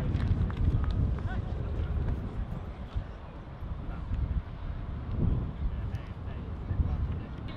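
Distant players shout across an open field.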